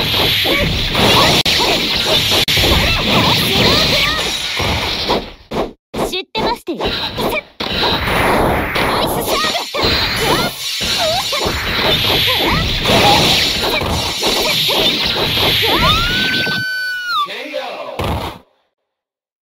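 Heavy hits land with sharp impacts.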